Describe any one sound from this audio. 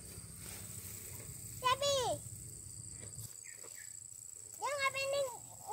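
A cow tears and chews grass while grazing close by.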